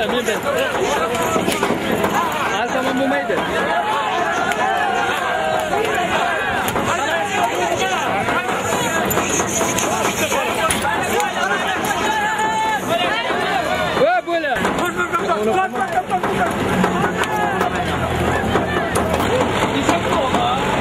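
A crowd of men shout and call out all around, close by.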